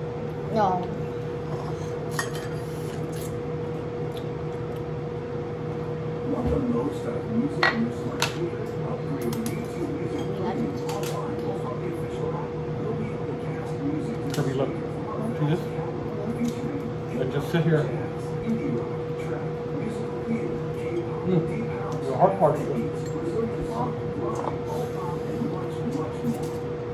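Forks clink and scrape against plates.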